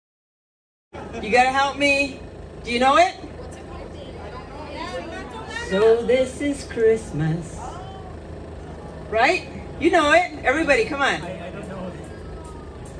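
Karaoke music plays through a loudspeaker.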